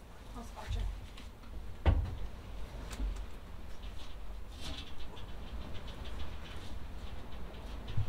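Wood creaks and knocks as a man pulls at a board.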